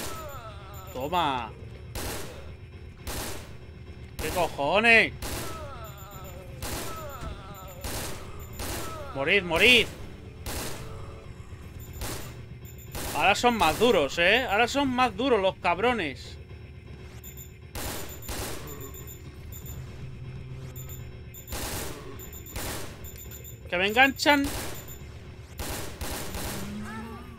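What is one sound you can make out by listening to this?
An assault rifle fires single shots repeatedly.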